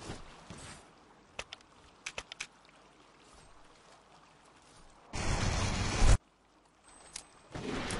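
Game spell effects zap and crackle in short bursts.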